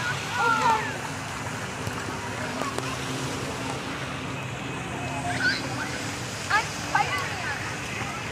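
Young girls squeal and call out nearby.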